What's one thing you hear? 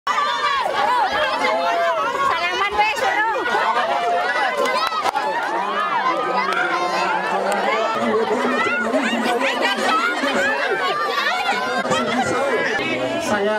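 A large crowd of men and women chatters and calls out loudly nearby.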